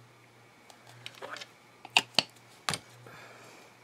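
A plastic glue bottle clicks and taps.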